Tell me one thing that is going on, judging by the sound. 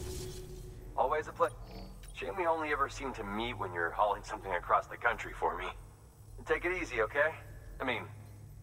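A man speaks calmly, slightly filtered, as if over a transmission.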